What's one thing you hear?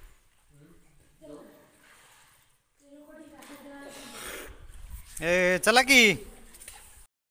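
Water splashes and sloshes in a deep, echoing well.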